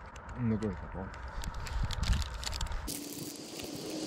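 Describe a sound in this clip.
A man chews food with soft crunching.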